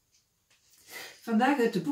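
An elderly woman reads aloud calmly, close by.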